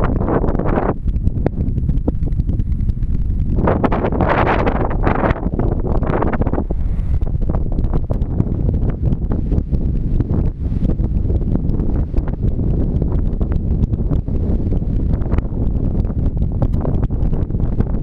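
Strong wind gusts and buffets across an open hillside throughout.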